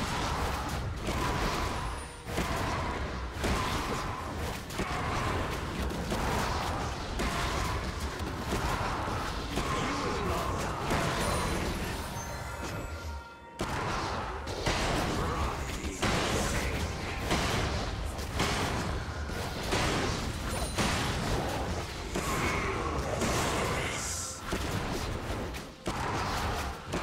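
Fantasy fighting effects whoosh and crackle as spells are cast.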